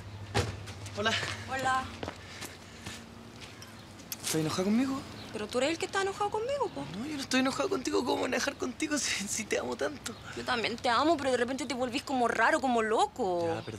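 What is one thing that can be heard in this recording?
A young woman speaks nearby with emotion.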